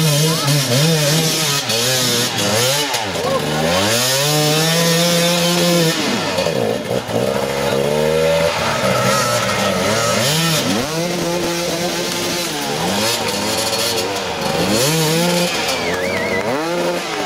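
Dirt bike engines rev hard and sputter close by.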